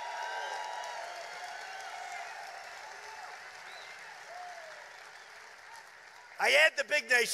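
A large crowd cheers and shouts, slowly dying down.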